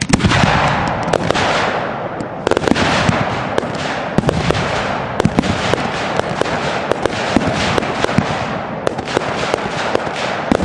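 Fireworks burst with sharp bangs and crackles.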